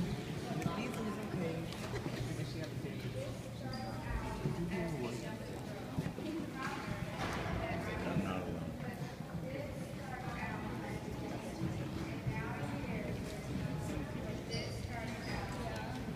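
A crowd of young people chatters loudly in a large echoing hall.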